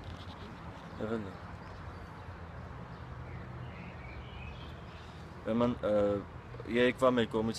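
A young man speaks calmly, close to a phone microphone.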